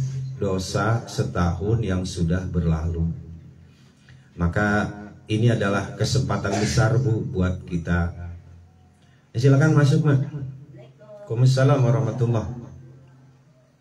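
A man chants melodically into a microphone close by.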